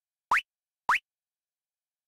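A menu cursor blips twice with short rising beeps.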